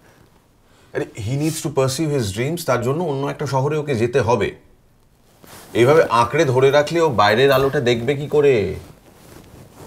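A middle-aged man speaks loudly and with emotion close by.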